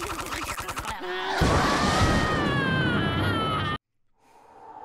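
A man's cartoon voice lets out a long, loud scream.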